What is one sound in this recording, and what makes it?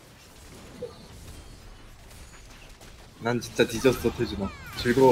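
Magic blasts and weapon hits crackle and clash in a game battle.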